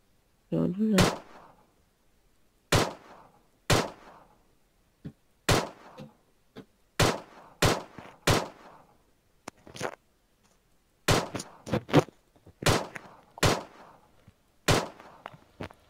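Pistol shots ring out one after another, sharp and loud.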